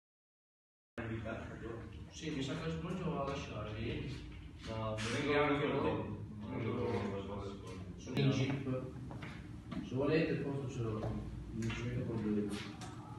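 Young men talk to each other nearby.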